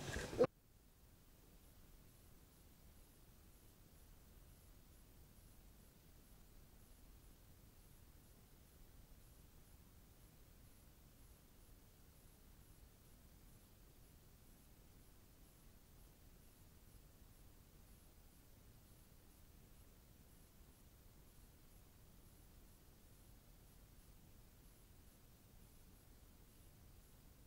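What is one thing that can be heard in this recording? Oil bubbles and sizzles steadily in a pot.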